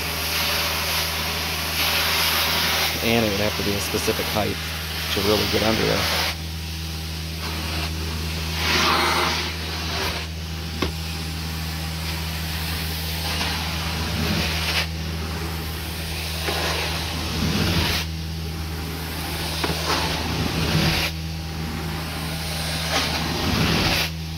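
A cleaning wand sucks and hisses as it slides over carpet.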